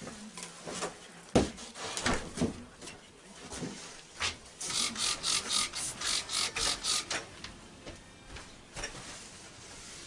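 Footsteps thud across a wooden floor indoors.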